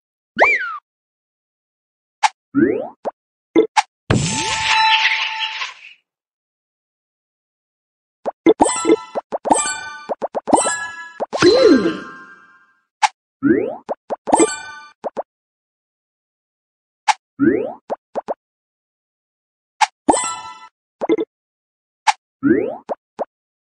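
Game sound effects chime and pop as pieces are matched.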